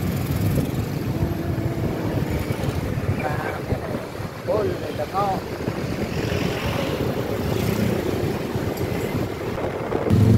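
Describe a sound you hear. Wind rumbles against a microphone while riding outdoors.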